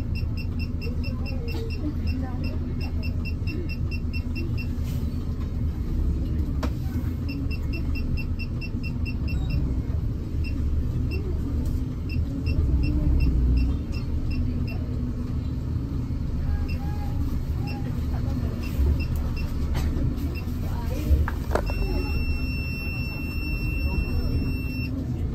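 A bus engine rumbles steadily while the bus rolls slowly.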